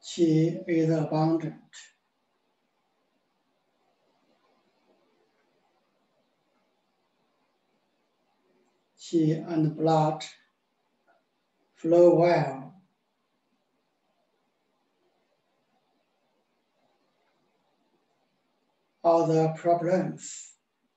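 A middle-aged man speaks calmly in short phrases, heard through an online call.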